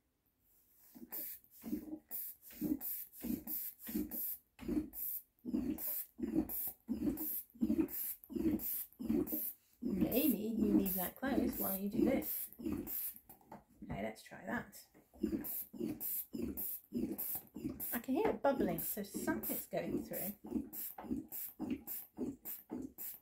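A hand pump squeaks and wheezes in a quick, steady rhythm.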